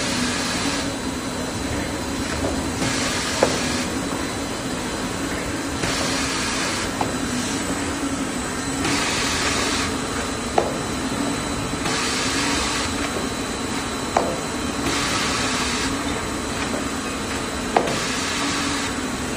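A packaging machine hums and whirs steadily.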